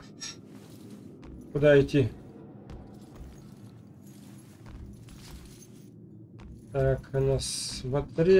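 Footsteps thud softly on a wooden floor.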